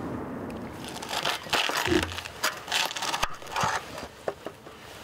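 A knife cuts on a plastic cutting board.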